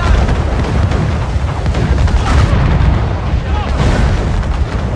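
Cannons fire with heavy booms.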